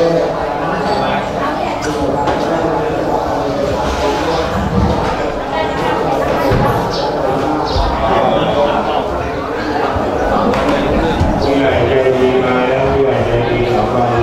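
A group of men chant together in low, steady voices.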